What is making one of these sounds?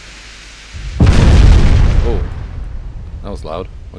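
Shells crash into the sea nearby with a loud, deep roar.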